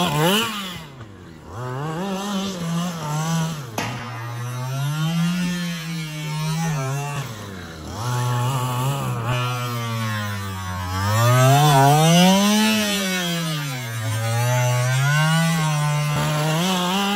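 A small electric motor whines, its pitch rising and falling as a remote-control car speeds up and slows down.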